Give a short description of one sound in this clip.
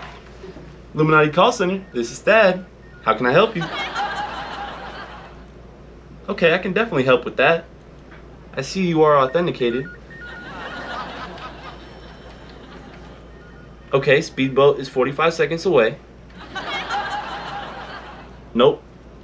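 A man talks animatedly into a phone up close.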